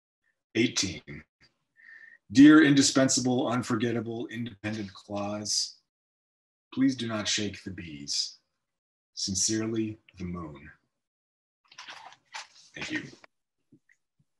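A man reads aloud calmly and close to a microphone.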